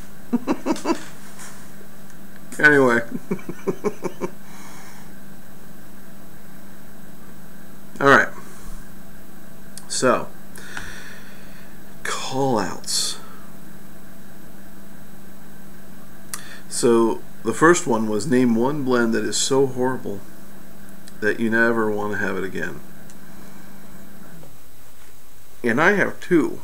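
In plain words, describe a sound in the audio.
A man puffs on a tobacco pipe.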